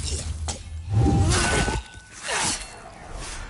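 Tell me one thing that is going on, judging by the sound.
A magic blast whooshes and bursts.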